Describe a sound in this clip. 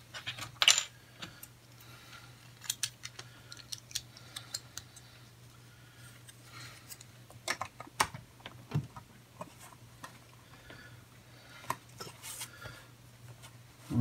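Small plastic pieces click and snap together.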